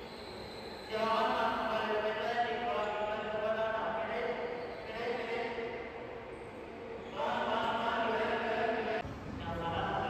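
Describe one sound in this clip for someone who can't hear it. Go-karts drive around a track in a large indoor hall.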